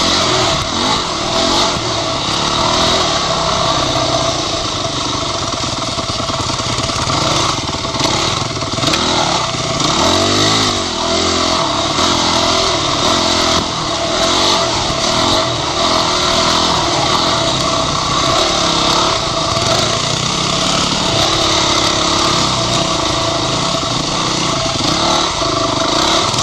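Another dirt bike engine buzzes a little way ahead.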